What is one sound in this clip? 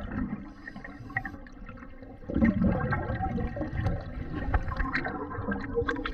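Air bubbles gurgle and rumble loudly from a diver's breathing regulator underwater.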